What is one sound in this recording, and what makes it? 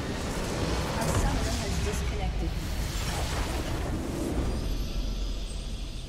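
A loud rumbling explosion booms and crackles.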